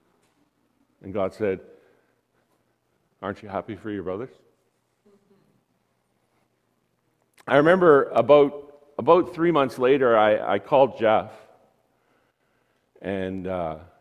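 A man speaks with animation through a microphone in a large room, in bursts with pauses.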